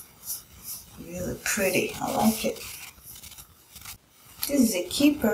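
A woman talks calmly close to a microphone.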